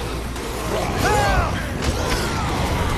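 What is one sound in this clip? Blunt blows thud against bodies.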